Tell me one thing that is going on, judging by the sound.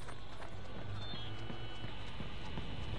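A short electronic chime beeps.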